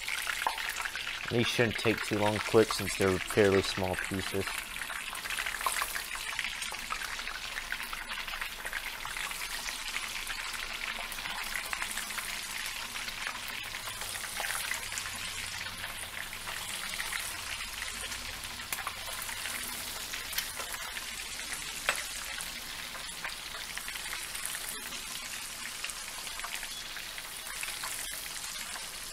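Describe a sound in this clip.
Hot oil sizzles and crackles steadily in a frying pan.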